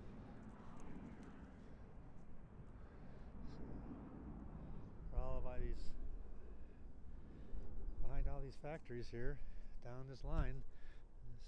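Wind blows outdoors with a low rumble.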